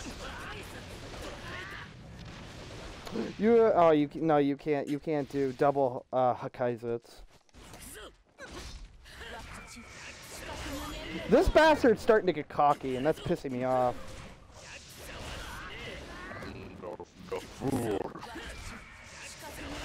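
Blades swish and strikes land with sharp impacts.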